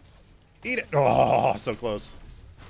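Magic attacks whoosh and crackle in a game battle.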